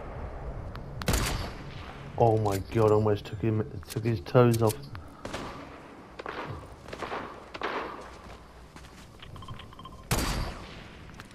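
A rifle fires single loud shots, with a booming echo.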